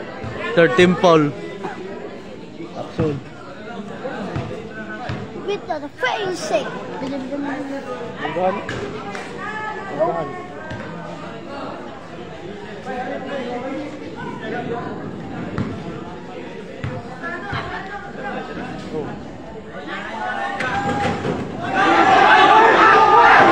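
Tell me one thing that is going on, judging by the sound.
Young men call out and talk across an outdoor court.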